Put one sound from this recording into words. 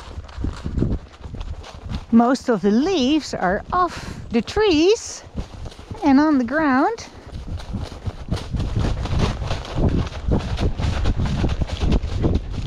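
A horse's hooves crunch and rustle through dry fallen leaves at a steady walk.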